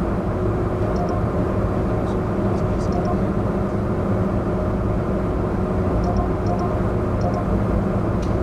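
A ticket terminal beeps.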